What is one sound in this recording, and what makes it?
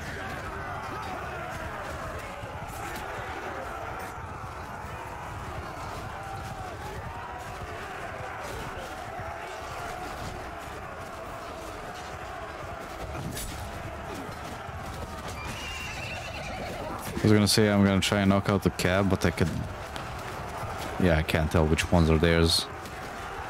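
Horses gallop over grass.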